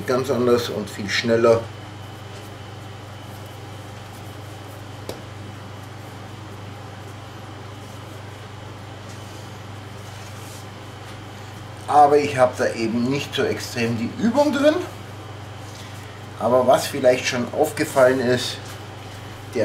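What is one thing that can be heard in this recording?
A man speaks calmly close by, in short bursts.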